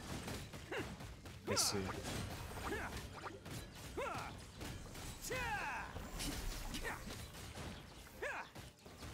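Electric crackles and magic blasts burst again and again in a game battle.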